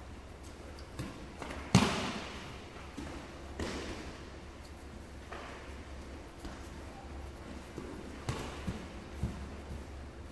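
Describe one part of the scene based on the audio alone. Bodies thump and slap onto a padded mat.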